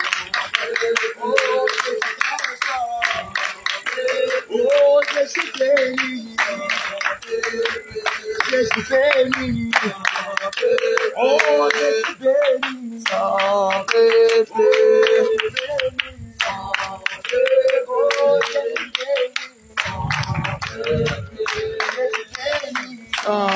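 A crowd of women sings loudly together.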